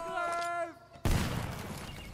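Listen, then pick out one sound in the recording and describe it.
A gunshot cracks nearby.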